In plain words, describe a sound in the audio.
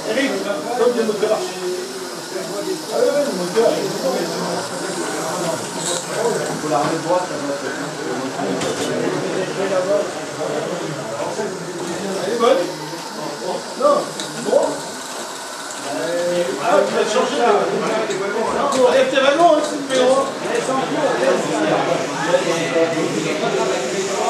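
Several people chat in a busy room with a murmur of voices.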